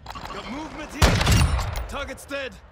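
A rifle fires a single loud, booming shot.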